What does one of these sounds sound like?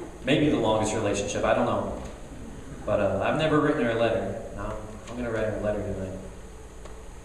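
A young man speaks loudly into a microphone over a loudspeaker, in an echoing hall.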